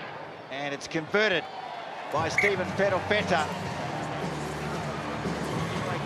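A stadium crowd murmurs in the distance.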